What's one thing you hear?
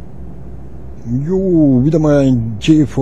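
A man speaks animatedly close to a microphone.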